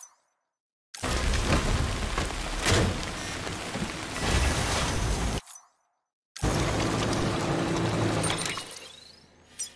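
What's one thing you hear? A truck engine rumbles and roars.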